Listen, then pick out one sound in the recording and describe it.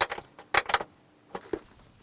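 A wrench clicks against a metal nut as it is turned.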